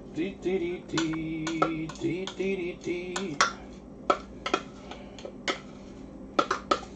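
A glass jar clinks and knocks as it is handled.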